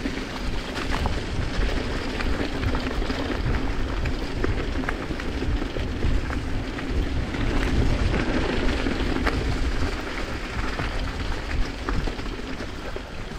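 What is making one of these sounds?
Bicycle tyres roll and crunch over a leafy dirt trail.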